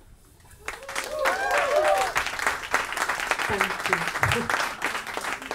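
A young woman speaks cheerfully through a microphone.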